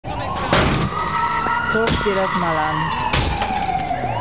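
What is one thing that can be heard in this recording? A car body is struck with loud thuds.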